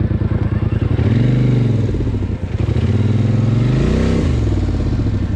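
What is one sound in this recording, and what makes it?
A quad bike engine revs up and down.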